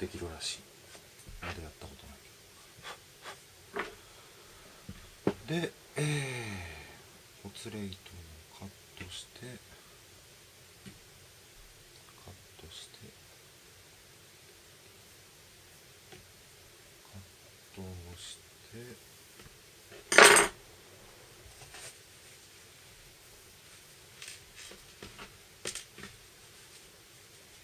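Small clicks and taps of handling tools sound close by.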